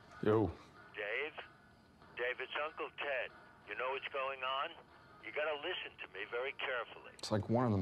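A voice speaks through a phone.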